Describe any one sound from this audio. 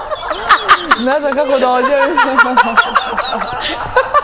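Women laugh together.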